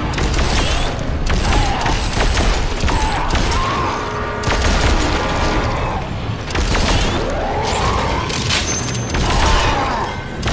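A gun fires in bursts.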